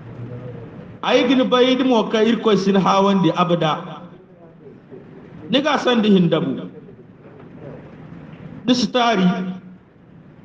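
A man prays aloud in a chanting voice, close by.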